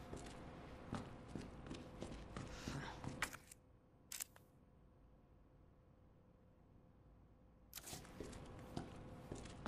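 Footsteps walk on a hard tiled floor.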